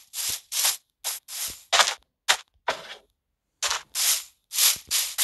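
Footsteps crunch in quick bursts over soft ground.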